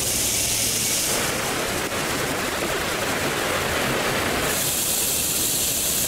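A steam train chugs along a track.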